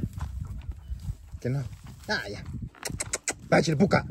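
Footsteps crunch on dry straw.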